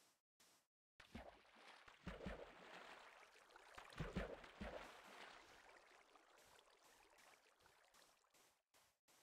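Water splashes and gushes loudly.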